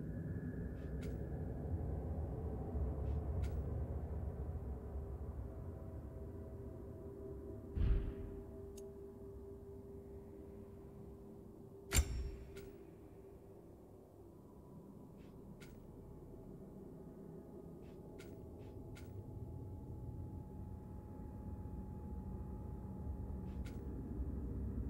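Soft menu clicks tick now and then as a selection moves.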